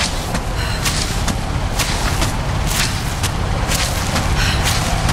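Wind rushes loudly and steadily.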